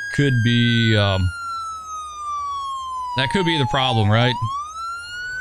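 An ambulance horn blares in two loud bursts.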